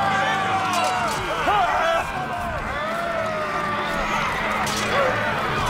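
Men shout war cries as they charge.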